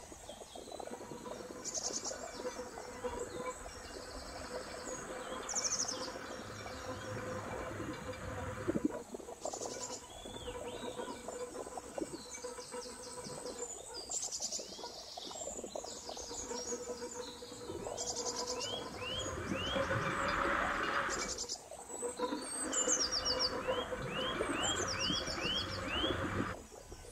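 A glass jar rolls and bumps along the ground.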